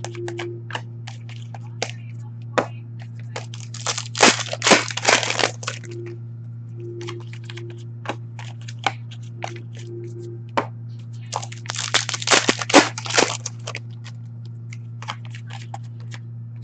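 Trading cards slide and flick against each other as they are shuffled by hand.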